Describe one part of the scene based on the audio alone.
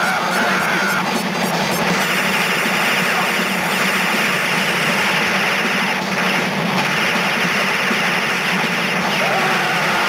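A helicopter's rotor whirs.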